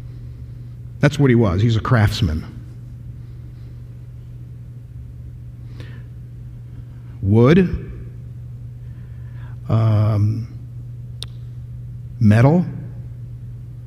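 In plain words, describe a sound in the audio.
A man speaks with animation through a microphone in a large echoing hall, pausing often.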